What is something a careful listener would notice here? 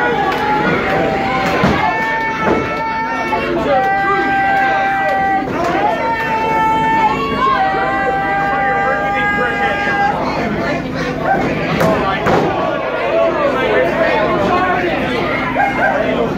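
Bodies thud onto a wrestling ring mat.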